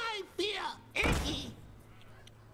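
A card game's sound effect thuds as a card lands on the board.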